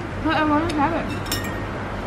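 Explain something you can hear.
A fork scrapes against a plate.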